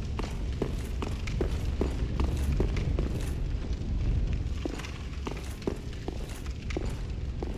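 Armored footsteps clank steadily on stone.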